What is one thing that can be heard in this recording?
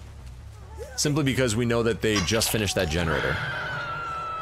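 A young woman screams in pain.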